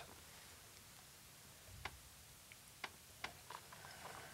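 A man sips from a glass and slurps softly.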